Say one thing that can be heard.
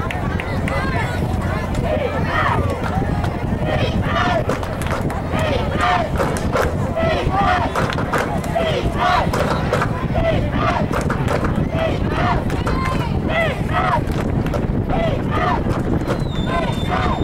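Spectators and coaches shout and cheer outdoors from the sidelines.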